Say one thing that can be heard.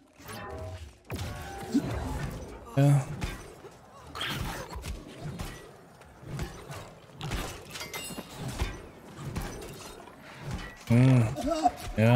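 Blades clash and strike in quick bursts of combat.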